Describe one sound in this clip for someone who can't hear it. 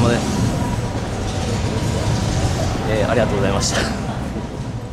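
A young man speaks casually, close to the microphone.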